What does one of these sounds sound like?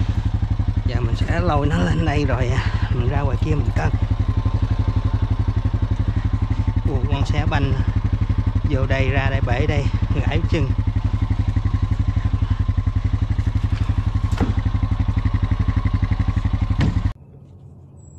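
An all-terrain vehicle's engine idles close by with a steady, throbbing rumble.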